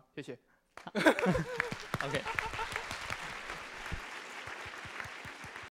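An audience applauds in a large room.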